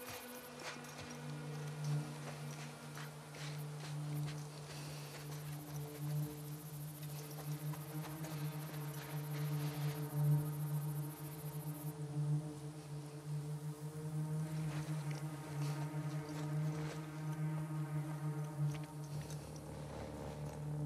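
Tall dry grass rustles as someone creeps through it.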